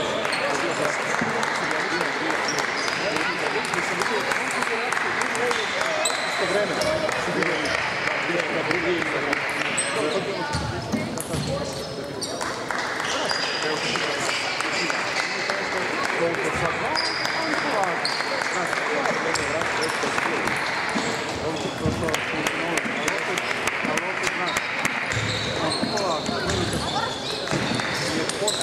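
Table tennis balls click on paddles and tables in quick rallies.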